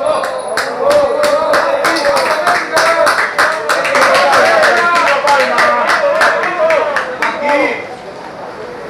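Runners' footsteps patter quickly on a track, close by.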